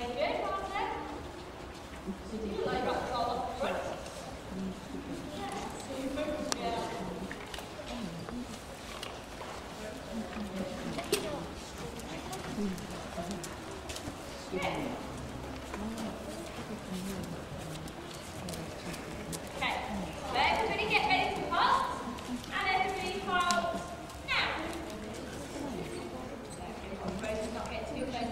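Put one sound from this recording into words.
Horse hooves thud softly on a sandy floor.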